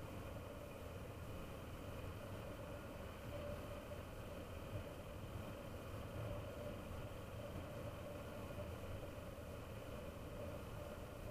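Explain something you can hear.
Tyres roll on asphalt with a steady rumble.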